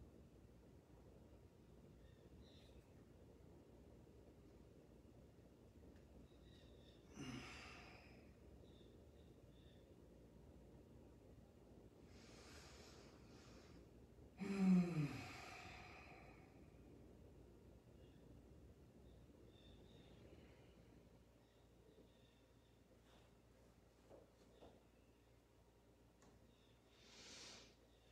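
A ceiling fan whirs softly and steadily.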